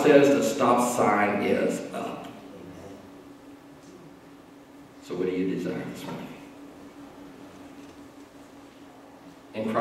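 A man preaches with animation into a microphone in a large echoing hall.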